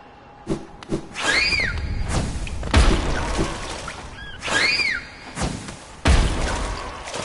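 A small game character jumps and lands with soft thuds.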